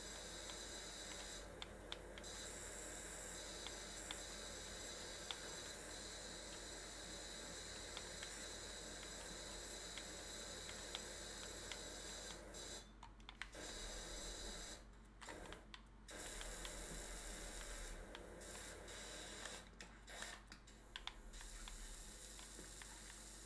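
A pressure washer sprays water with a steady hissing rush.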